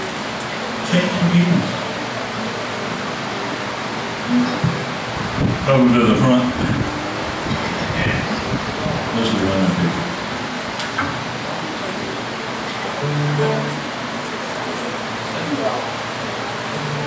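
A woman speaks into a microphone through loudspeakers in a large room.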